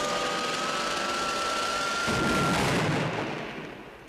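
Steam hisses loudly.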